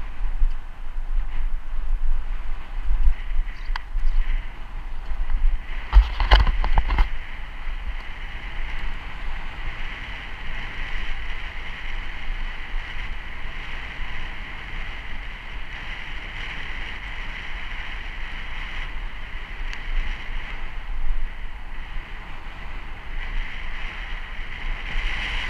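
Wind buffets the microphone outdoors, rumbling low and unevenly.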